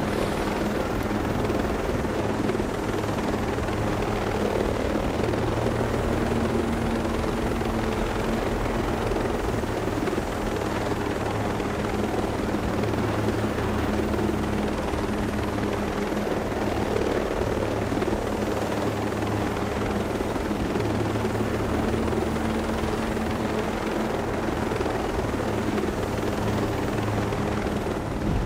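A helicopter's rotor thumps and its engine whines steadily throughout.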